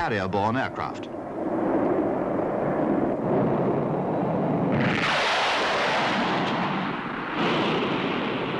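A jet plane roars overhead at low height.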